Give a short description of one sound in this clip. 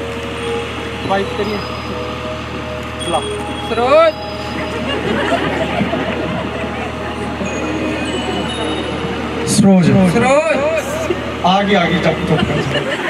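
A young man speaks with animation into a microphone, heard over loudspeakers.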